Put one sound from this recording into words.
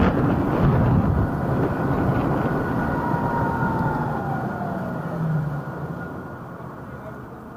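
Wind rushes past a moving scooter and dies down as it slows to a stop.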